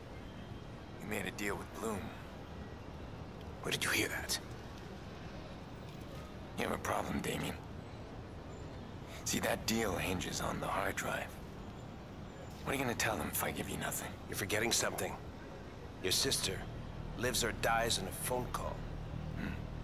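A middle-aged man speaks in a low, menacing voice.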